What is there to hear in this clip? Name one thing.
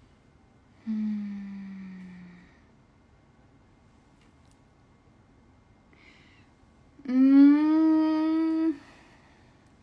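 A young woman sings drawn-out notes close to the microphone.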